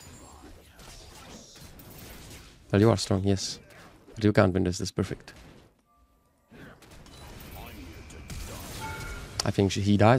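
Game combat effects whoosh and clash.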